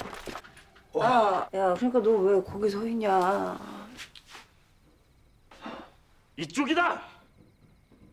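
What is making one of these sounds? A young woman speaks tensely and quietly nearby.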